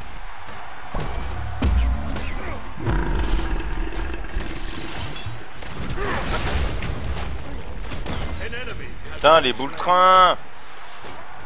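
Weapons strike and thud in a fight.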